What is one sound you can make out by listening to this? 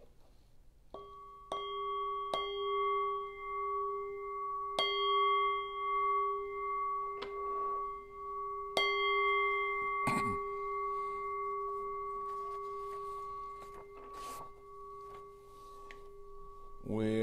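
A metal bowl bell is struck several times and rings out long and clear.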